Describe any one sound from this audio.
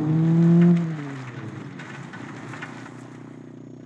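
Tyres skid and crunch on loose dirt.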